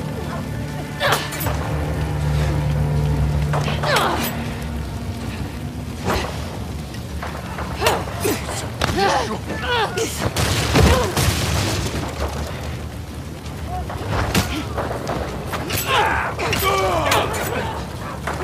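Heavy blows land in a close fight.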